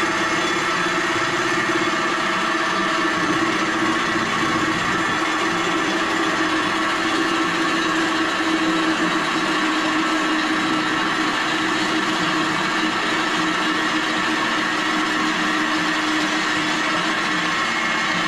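A power drill whines steadily as it drills into metal.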